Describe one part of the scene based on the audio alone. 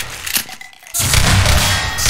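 A shotgun fires with loud, booming blasts.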